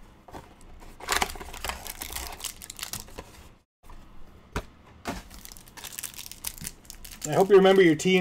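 Plastic card packs crinkle and rustle as hands open them.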